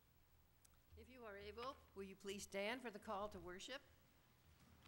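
A congregation sings in an echoing hall.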